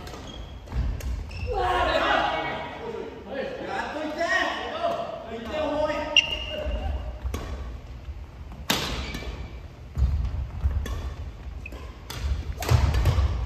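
Shuttlecocks are struck with sharp pops of badminton rackets in a large echoing hall.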